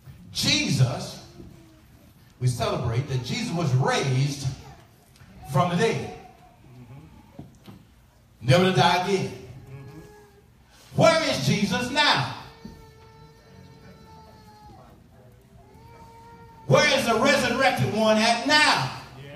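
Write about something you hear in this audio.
A man preaches loudly and with passion through a microphone and loudspeakers, echoing in a large hall.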